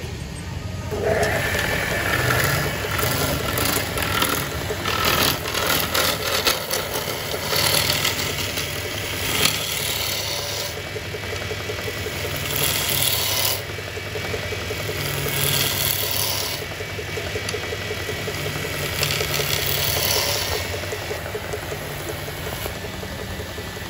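A chisel scrapes and shaves spinning wood in rough bursts.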